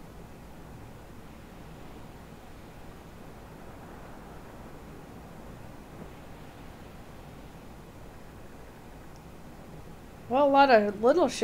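Waves splash against the hull of a sailing ship.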